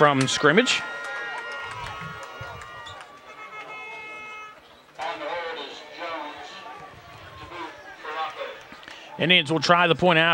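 Players and spectators shout and chatter outdoors at a distance.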